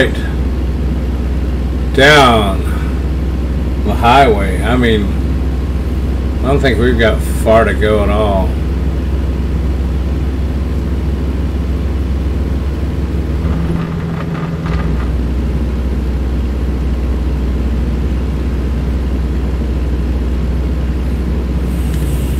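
A truck engine drones steadily at highway speed.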